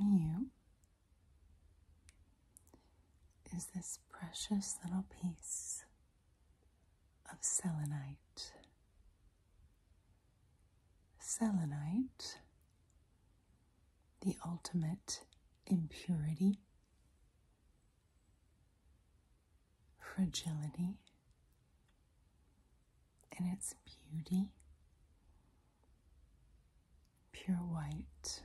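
A woman whispers softly and close to a microphone, in short bursts with pauses.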